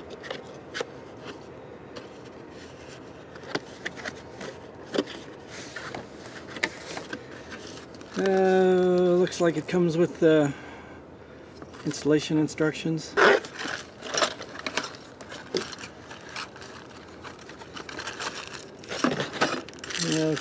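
Cardboard and foam packing rustle and scrape under a hand.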